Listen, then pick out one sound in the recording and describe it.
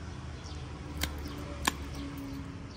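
Pruning shears snip with sharp clicks.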